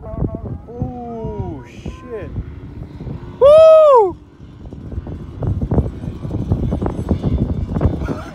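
A dirt bike engine revs in the distance as it climbs a hill.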